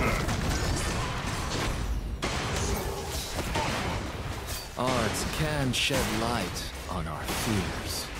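Magic attacks whoosh and crackle during a fight.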